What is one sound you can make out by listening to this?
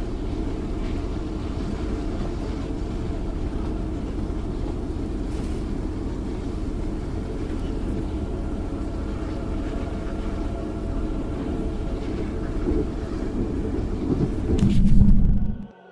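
A steam train rumbles steadily as it rolls along the rails.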